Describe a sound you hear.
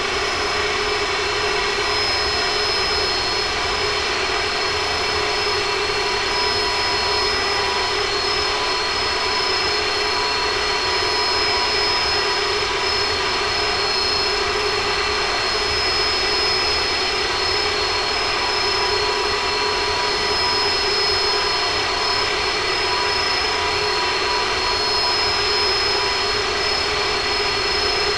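A jet airliner's engines roar and whine steadily.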